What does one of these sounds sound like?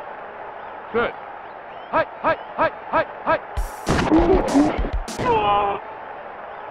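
Football players collide with quick thuds and clicks.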